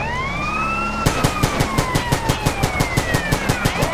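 A gun fires in rapid bursts of shots.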